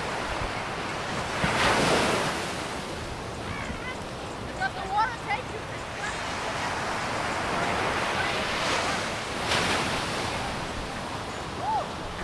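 Waves break and wash onto the shore outdoors.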